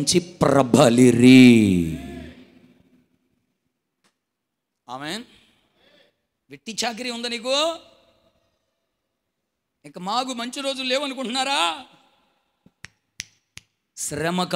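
A man preaches with animation into a microphone, his voice loud through a loudspeaker, with pauses between phrases.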